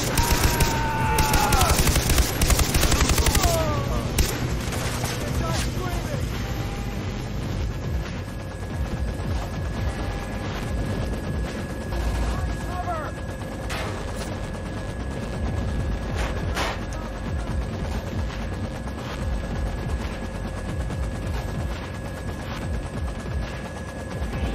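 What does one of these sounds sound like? A helicopter's rotor thumps and its engine drones steadily.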